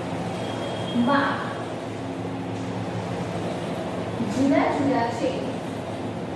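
A woman speaks briefly and calmly.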